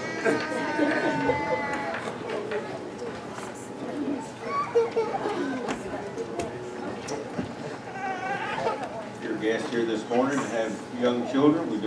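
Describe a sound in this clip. Footsteps shuffle on a wooden floor.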